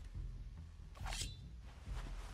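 A blade scrapes as it is drawn from a sheath.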